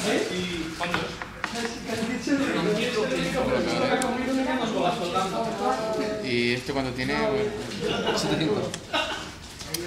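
Playing cards are slid and tapped onto a table.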